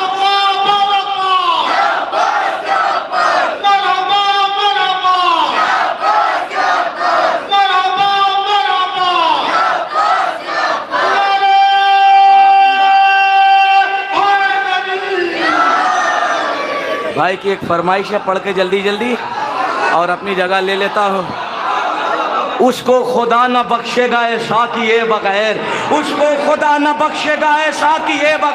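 A young man sings with feeling into a microphone, heard through loudspeakers in a large hall.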